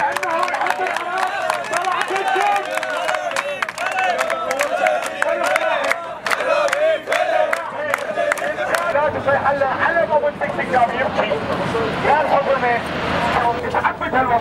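A large crowd of young men chants loudly outdoors.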